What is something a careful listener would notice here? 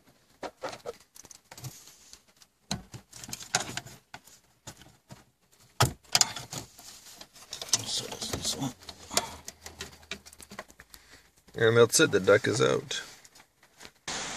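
Plastic connectors click and wires rattle as they are handled.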